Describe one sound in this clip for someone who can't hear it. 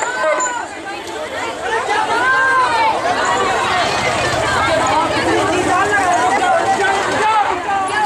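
A crowd of women chants and shouts loudly outdoors.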